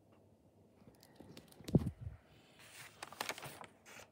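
Paper rustles as it is handled close by.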